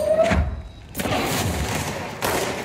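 An explosion booms and crackles.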